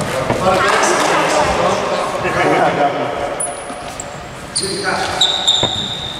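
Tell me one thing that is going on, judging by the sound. A basketball bounces on the wooden floor.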